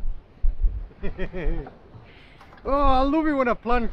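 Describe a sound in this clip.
A young man speaks excitedly close by.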